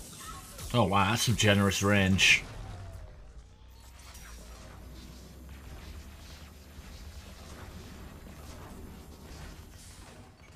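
Futuristic weapons fire in rapid bursts.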